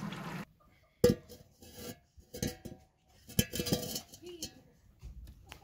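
A metal pot clanks as it is set down on a clay stove.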